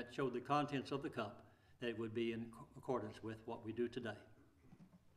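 An elderly man speaks calmly into a microphone in a large room.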